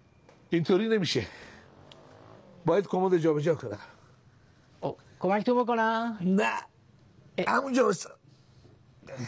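An elderly man speaks with animation nearby.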